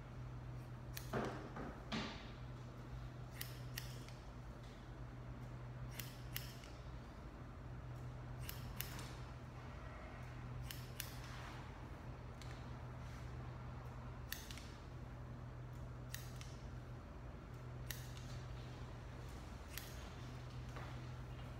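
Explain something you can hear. Scissors snip sharply through hair, again and again.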